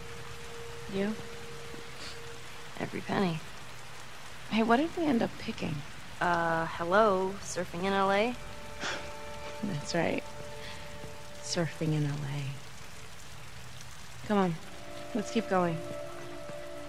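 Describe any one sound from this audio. A teenage girl speaks casually nearby.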